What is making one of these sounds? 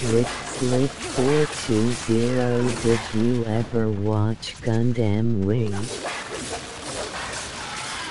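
Heavy blows strike a large spider-like creature.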